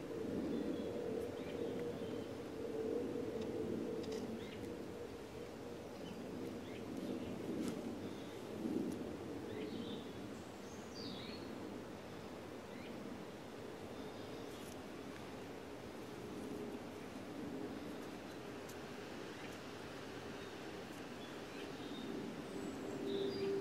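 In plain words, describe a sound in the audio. A thin wire rattles and clicks softly as hands twist it.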